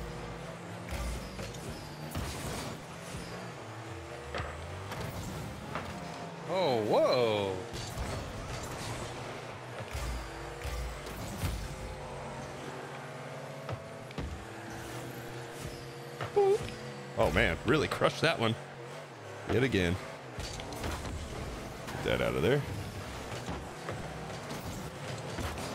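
Car engines hum and boost with a whooshing roar.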